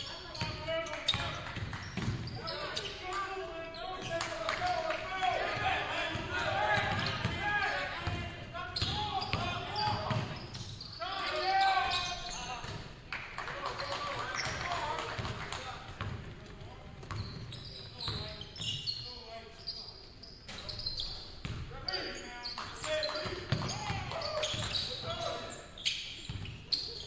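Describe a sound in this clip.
Players shout to each other across the court.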